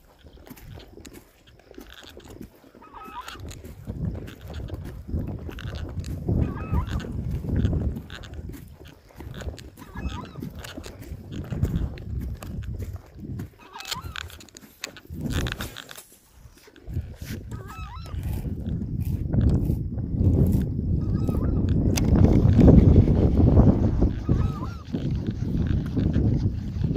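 Wind gusts across open water and buffets the microphone.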